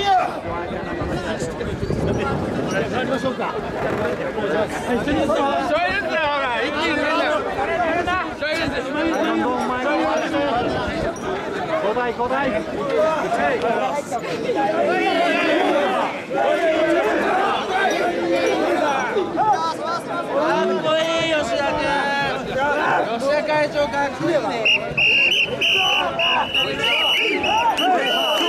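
A large crowd of men chants rhythmically together close by, outdoors.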